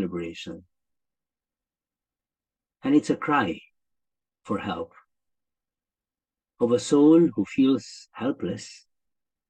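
A middle-aged man speaks calmly in phrases with pauses, close to a microphone.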